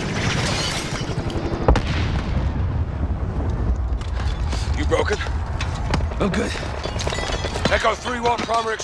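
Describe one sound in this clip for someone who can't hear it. A loud explosion booms and rumbles on.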